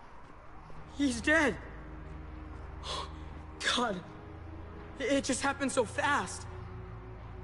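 A young woman speaks with feeling close to a microphone.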